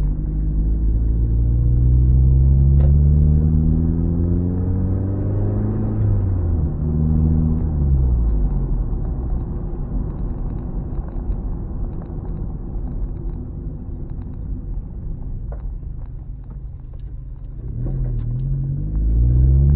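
A car engine hums from inside the car as it drives, rising and falling in pitch.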